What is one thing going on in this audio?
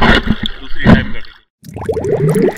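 Waves slosh and splash at the water's surface.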